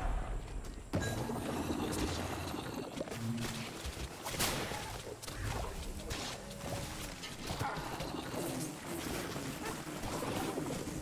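Magic blasts and sharp blows crackle in a fight.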